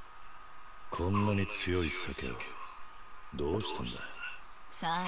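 A man speaks with surprise, asking questions.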